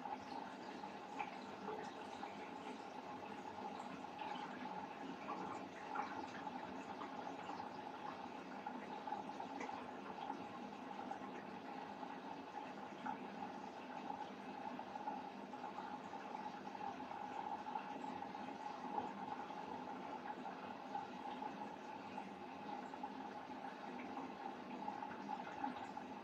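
A washing machine hums steadily as its drum turns, with soft clicks and rattles.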